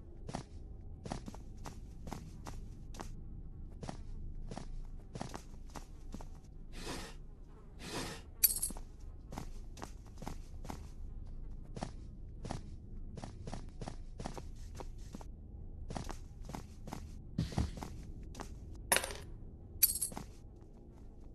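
Footsteps fall on a concrete floor.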